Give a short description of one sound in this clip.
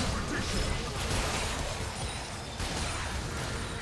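Magic blasts crackle and boom in a busy fight.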